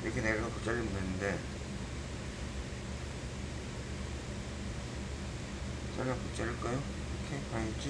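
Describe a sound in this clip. Fabric rustles softly as hands smooth it on a table.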